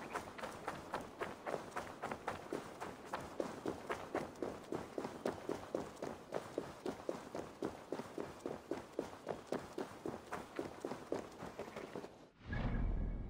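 Footsteps run quickly over a stone path.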